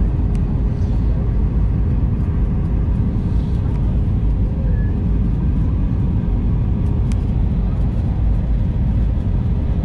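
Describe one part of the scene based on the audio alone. Air rushes loudly past the aircraft.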